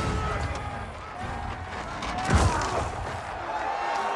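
Metal weapons clash and clang in a fight.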